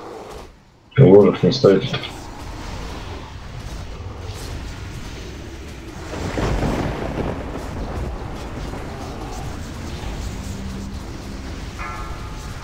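Magic spells crackle and blast during a battle.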